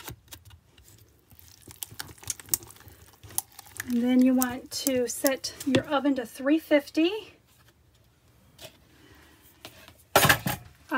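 A spatula stirs thick batter, scraping and tapping against a plastic container.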